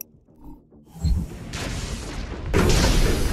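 A heavy weapon blasts and rumbles loudly.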